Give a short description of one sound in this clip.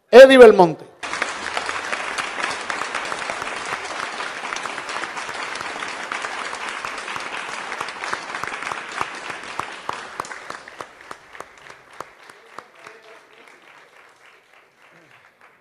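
An audience applauds and the applause slowly fades.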